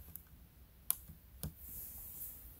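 A finger presses a laptop key with a soft click.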